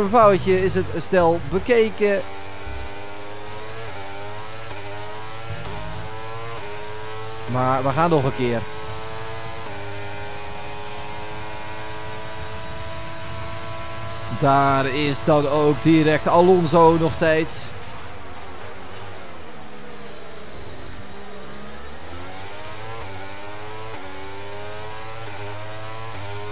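A racing car engine screams steadily, its pitch climbing and dropping as the gears shift.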